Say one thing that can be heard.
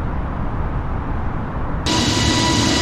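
Jet engines rumble steadily in the cockpit.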